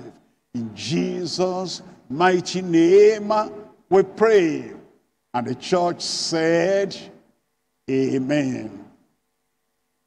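An elderly man speaks with feeling into a microphone, heard through loudspeakers.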